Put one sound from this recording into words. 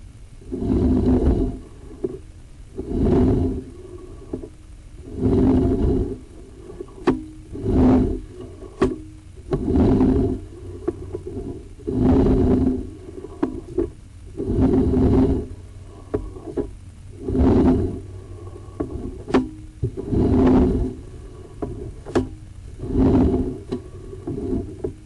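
Water rushes through a pipe in short, regular surges.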